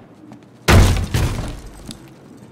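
A door bursts open with a loud bang.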